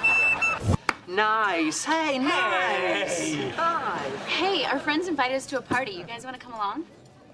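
A man laughs loudly nearby.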